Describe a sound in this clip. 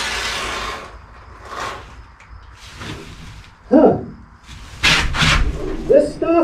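A spray gun hisses in short bursts.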